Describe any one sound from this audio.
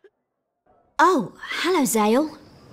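A young woman speaks brightly and warmly, close by.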